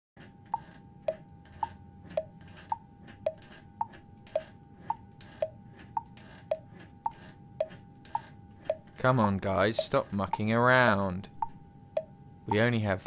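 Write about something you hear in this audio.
A clock ticks steadily with an alternating tick and tock.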